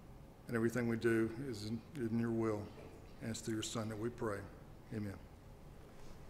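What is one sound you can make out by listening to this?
An older man speaks calmly through a microphone in a large room.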